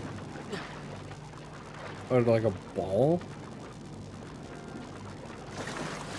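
Water splashes as a small figure swims.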